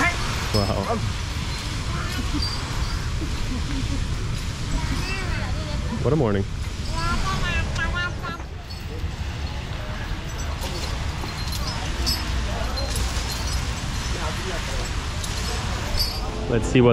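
Men talk nearby outdoors.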